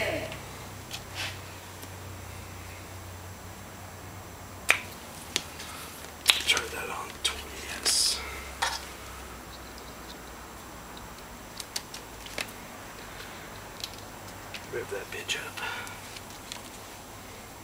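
Metal clips click and rattle as wires are handled close by.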